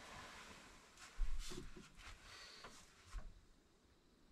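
Footsteps thump on a wooden floor nearby.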